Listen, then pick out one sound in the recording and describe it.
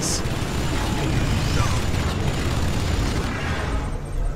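A laser weapon fires with a loud, roaring blast.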